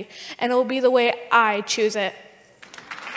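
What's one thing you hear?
A young woman speaks with feeling into a microphone.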